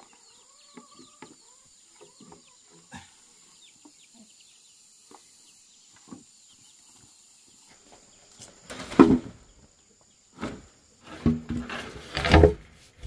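Hollow bamboo poles knock and thud against each other.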